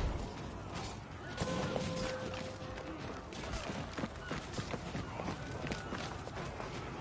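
Heavy footsteps run across wooden planks and sand.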